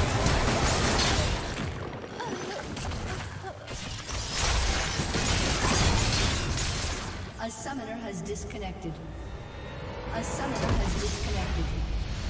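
Game sound effects of spells and attacks burst and crackle.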